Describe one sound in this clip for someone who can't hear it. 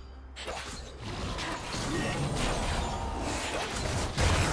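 Magic spell effects whoosh and crackle as game fighters clash.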